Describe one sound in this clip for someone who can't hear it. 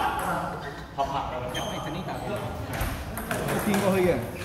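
A table tennis ball clicks off paddles and the table in a rally.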